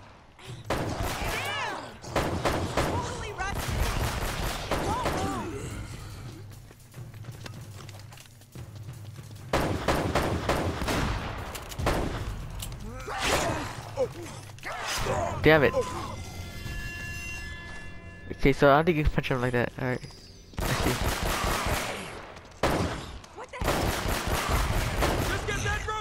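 Gunshots ring out in quick bursts.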